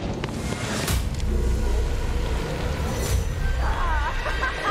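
A gunshot rings out.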